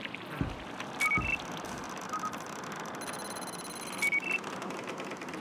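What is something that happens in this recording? Short electronic beeps chime.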